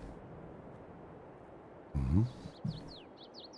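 A sheep bleats nearby.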